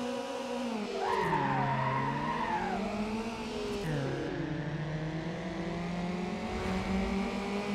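A car engine roars steadily as the car speeds up.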